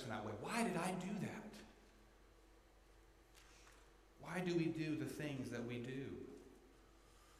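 A man speaks calmly into a microphone in a large, echoing room, pausing between phrases.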